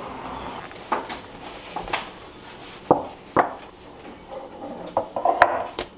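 A ceramic bowl knocks against a counter.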